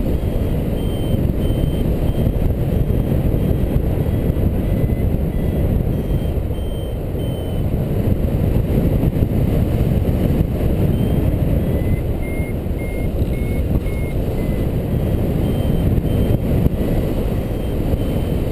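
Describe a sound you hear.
A flight instrument beeps in short repeated tones.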